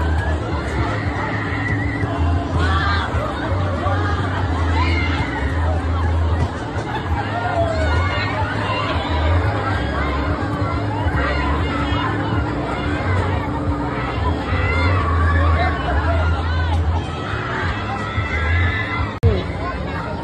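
A fairground ride's machinery rumbles and whirs steadily.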